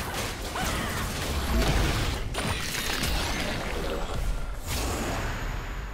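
Video game spell effects crackle and boom during a fight.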